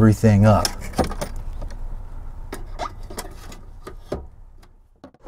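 A glove box lid clicks and taps as it is handled.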